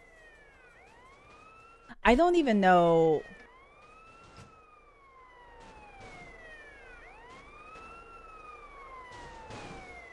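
A siren wails, rising and falling in slow sweeps.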